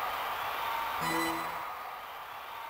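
A short menu chime rings.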